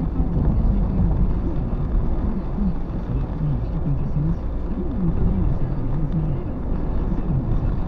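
A windscreen wiper sweeps across the glass.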